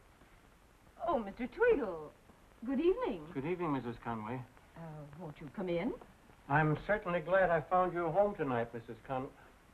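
A woman talks with tension, close by.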